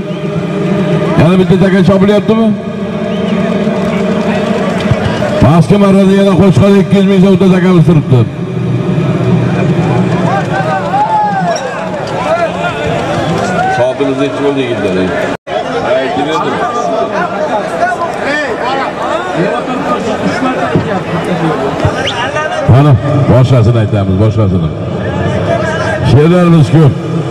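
A large crowd of men shouts and murmurs outdoors.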